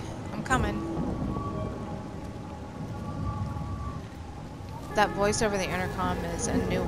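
A fire roars with a low rumble.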